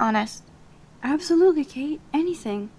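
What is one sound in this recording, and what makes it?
A second young woman answers calmly.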